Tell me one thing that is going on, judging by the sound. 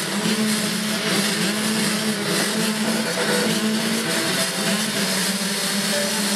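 Many motorcycle engines idle and rev loudly together at close range.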